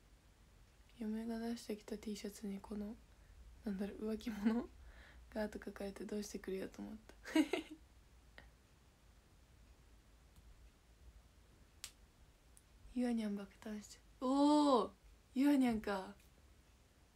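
A young woman talks close to a microphone, calmly and with pauses.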